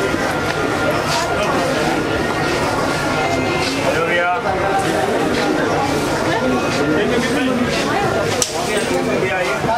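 A crowd of men and women chatter all around in a busy, echoing indoor space.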